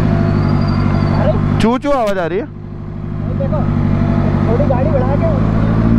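A young man talks nearby over the engine noise.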